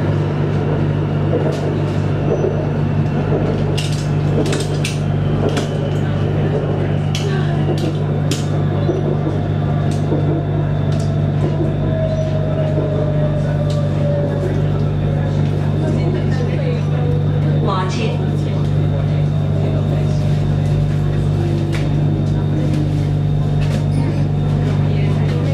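Traffic hums steadily on a busy street below, heard from above.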